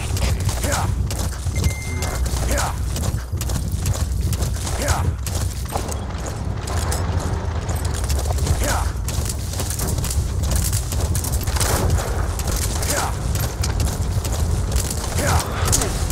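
A horse's hooves thud steadily on dry ground.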